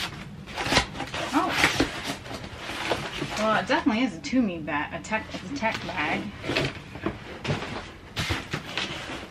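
Cardboard flaps rustle and scrape as a box is packed.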